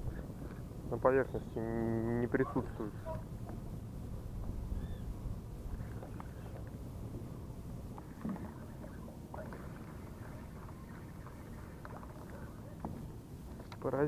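Small waves lap gently on open water.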